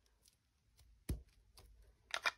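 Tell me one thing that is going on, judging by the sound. A rubber stamp thumps down onto paper.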